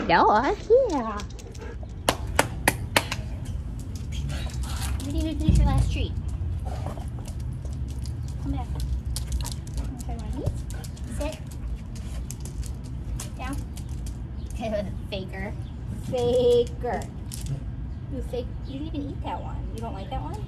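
A woman talks to a dog in a bright, encouraging voice nearby.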